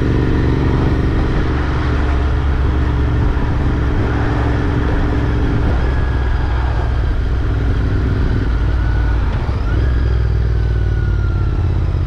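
A motorcycle engine rumbles steadily close by.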